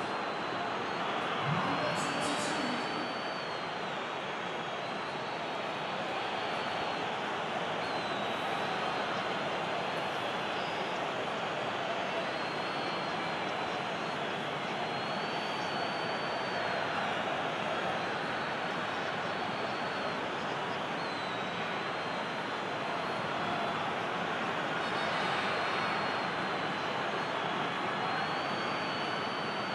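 A large stadium crowd roars steadily, swelling into a loud cheer.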